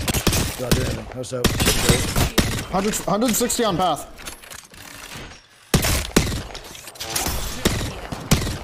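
Rapid gunshots crack from a video game.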